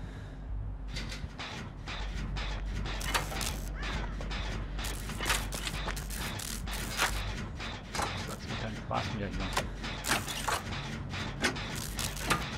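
A machine clatters and rattles rapidly as it is repaired.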